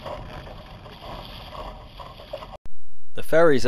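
Small waves lap and splash close by on open water.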